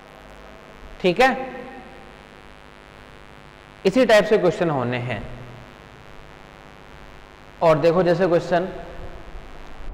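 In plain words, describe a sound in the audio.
A man speaks loudly in short bursts.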